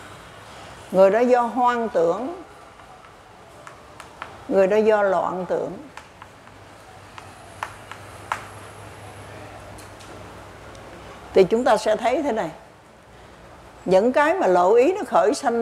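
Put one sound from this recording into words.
An elderly woman speaks slowly and clearly through a microphone, in short phrases with pauses.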